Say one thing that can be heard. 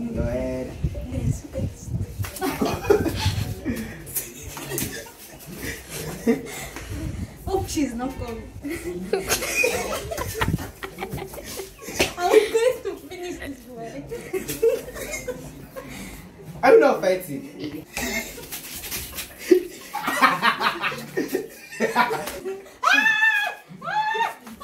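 A girl talks and laughs excitedly nearby.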